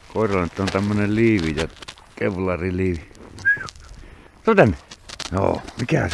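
A dog runs through snow.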